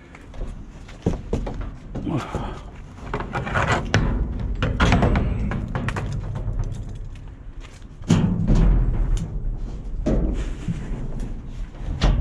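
A metal bin lid clanks and rattles as it is handled.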